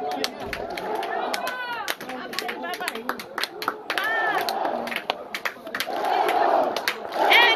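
A crowd of fans cheers and chants loudly outdoors.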